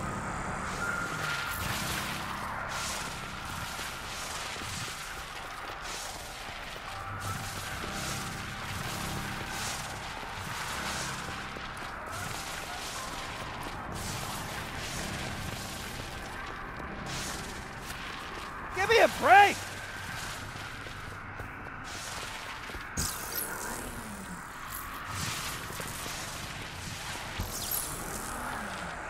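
Electric energy crackles and zaps in bursts.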